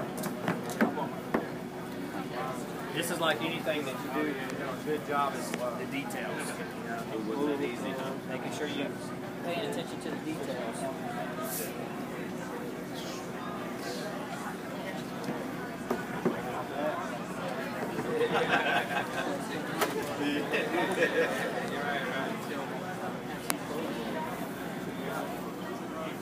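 A man speaks calmly to a small crowd outdoors.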